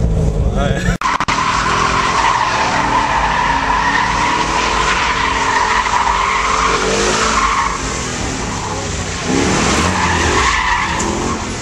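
Tyres squeal loudly on pavement as a car drifts nearby.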